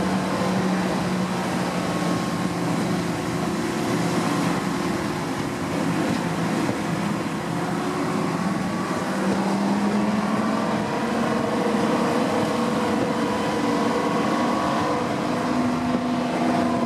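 A steam train rumbles and clatters along the tracks.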